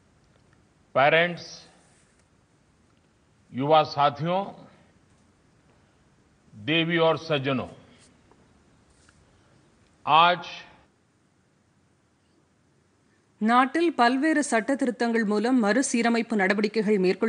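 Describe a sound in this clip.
An elderly man speaks calmly in short phrases with pauses, heard through a microphone.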